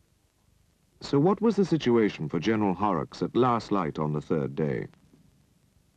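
A middle-aged man speaks firmly and briskly close by.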